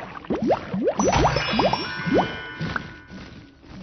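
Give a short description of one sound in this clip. Bright chimes ring as gems are collected.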